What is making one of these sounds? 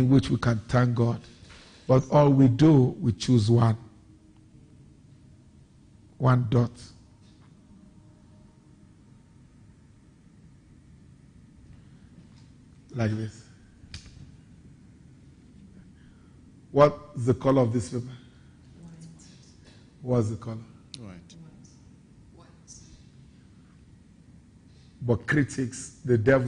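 A man reads aloud calmly into a microphone, pausing often.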